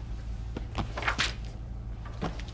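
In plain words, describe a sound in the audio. Paper rustles as a page is turned.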